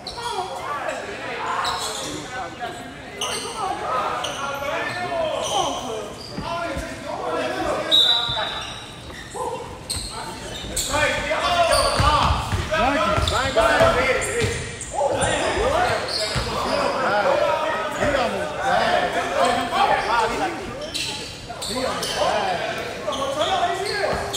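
Men shout and call out to each other in a large echoing gym.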